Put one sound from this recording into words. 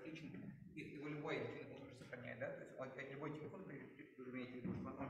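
A middle-aged man lectures steadily in an echoing room, heard through a microphone.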